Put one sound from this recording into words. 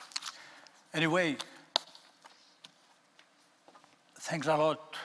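An older man speaks into a microphone.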